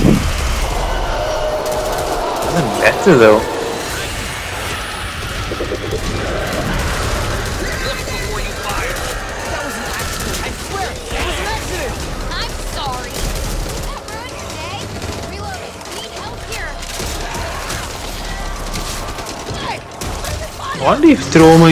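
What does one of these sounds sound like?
Zombies snarl and groan.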